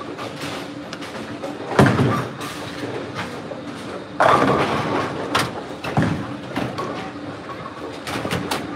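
Bowling balls rumble along wooden lanes in a large echoing hall.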